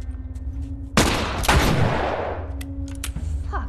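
A rifle fires a loud shot that booms and echoes away.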